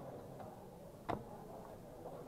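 A game clock button is pressed with a click.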